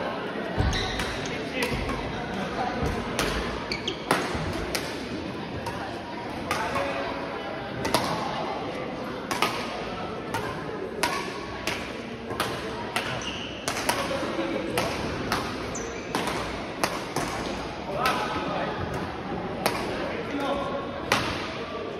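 Badminton rackets strike a shuttlecock in a quick back-and-forth rally, echoing in a large indoor hall.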